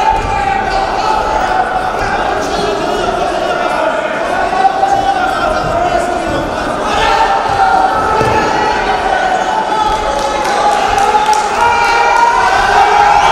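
A crowd in a large echoing hall cheers and shouts throughout.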